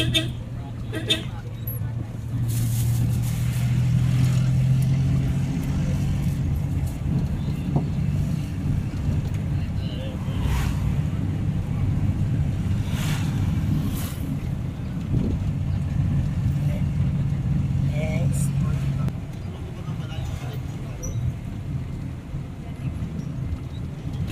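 A vehicle engine hums steadily from inside the cab while driving.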